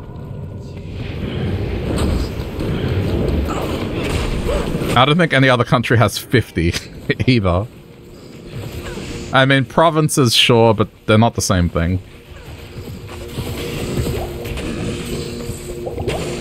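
Magic spells hiss and burst in a fight with monsters.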